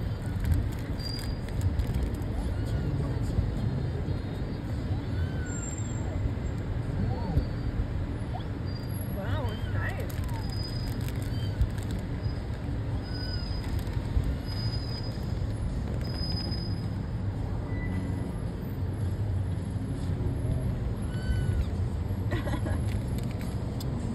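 A car engine hums low and steady while driving slowly.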